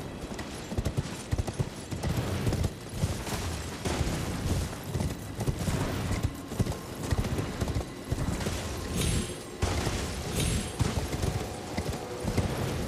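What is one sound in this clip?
Horse hooves thud steadily on rough ground.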